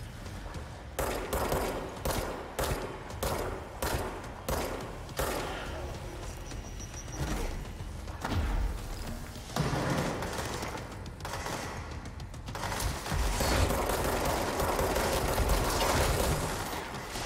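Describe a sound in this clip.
A pistol fires a quick series of loud shots.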